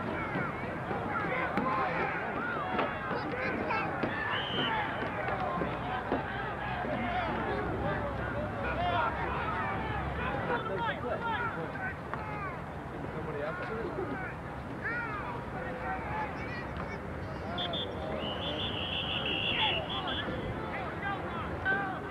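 A crowd of young men and boys chatter and shout outdoors.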